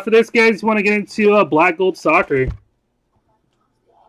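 A cardboard box is set down on a table.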